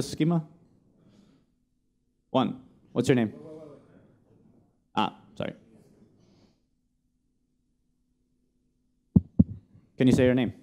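A young man speaks calmly through a microphone, explaining with pauses.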